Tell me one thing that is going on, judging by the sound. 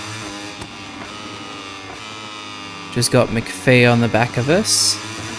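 A racing motorcycle engine whines at high revs, its pitch shifting through gear changes.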